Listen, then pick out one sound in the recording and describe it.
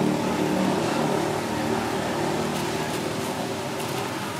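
Metal tongs tap and scrape against foil.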